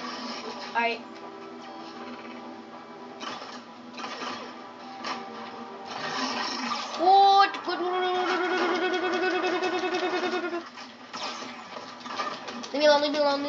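Rapid gunfire and blasts crackle from a television's speakers.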